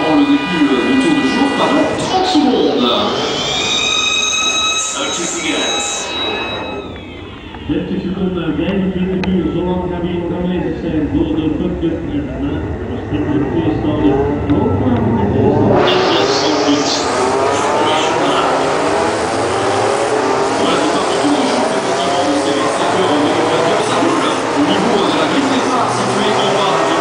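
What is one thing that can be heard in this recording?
Racing car engines roar loudly nearby.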